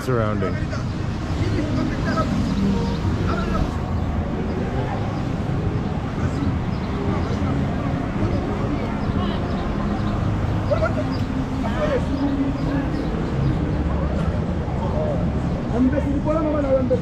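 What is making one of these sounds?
Many people chatter at a distance outdoors.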